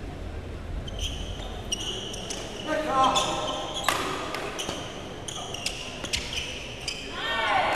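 Shoes squeak sharply on a hard court floor.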